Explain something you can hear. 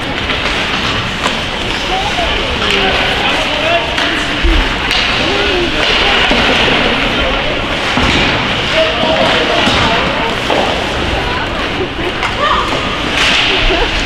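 Spectators talk nearby in an echoing ice rink.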